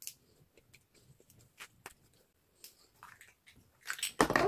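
Small plastic parts click and snap as they are twisted apart.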